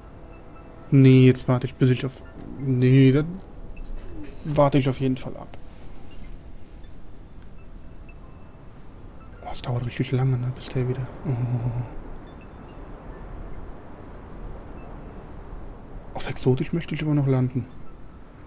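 A young man talks into a close microphone in short bursts, calmly.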